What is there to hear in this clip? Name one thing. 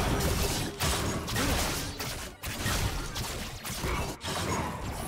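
Blades clash and strike in quick bursts.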